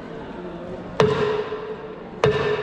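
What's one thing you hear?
A small metal percussion instrument is struck sharply and rings.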